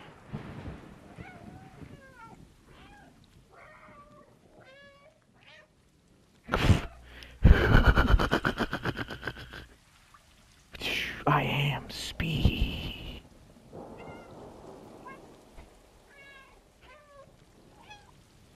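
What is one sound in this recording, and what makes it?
A cat meows repeatedly.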